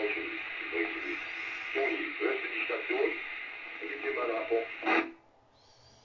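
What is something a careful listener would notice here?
A radio crackles with static through a small loudspeaker, then cuts off abruptly.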